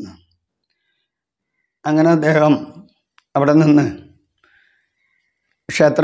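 An elderly man speaks slowly and calmly in short phrases, close to a microphone.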